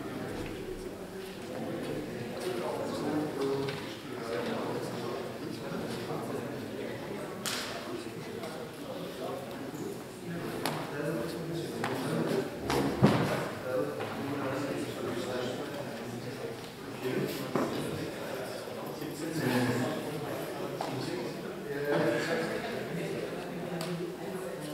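Men talk and chatter in a large echoing hall.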